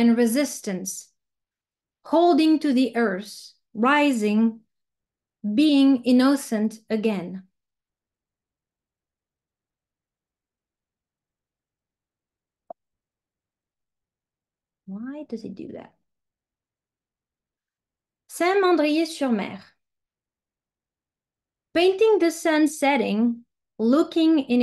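A woman speaks calmly over an online call, pausing between phrases.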